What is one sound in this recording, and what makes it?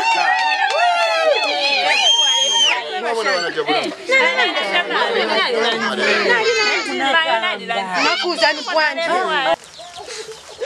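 Several women sing loudly together close by.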